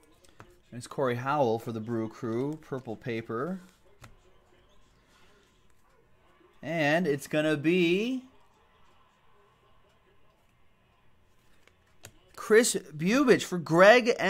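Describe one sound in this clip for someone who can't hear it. Trading cards shuffle and flick against each other.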